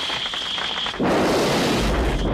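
A ray weapon fires with a sudden loud hissing blast.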